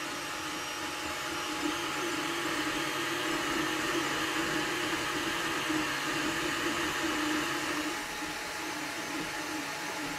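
A 3D printer's motors whir and hum steadily as the print head moves.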